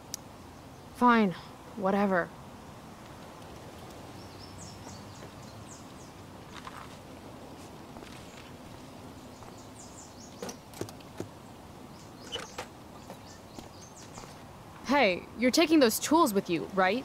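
A young woman speaks flatly, close by.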